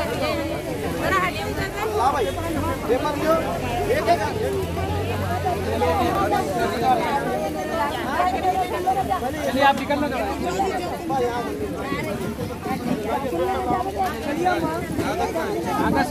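A crowd of men and women chatter and call out close by.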